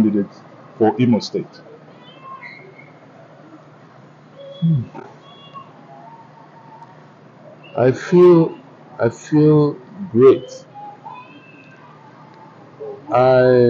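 An elderly man speaks calmly and slowly into a nearby microphone, with long pauses.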